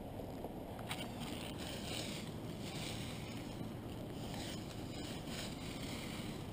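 Dry leaves rustle and crunch close by.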